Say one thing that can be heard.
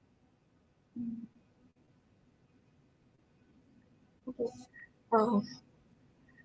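A young woman speaks calmly and briefly over an online call.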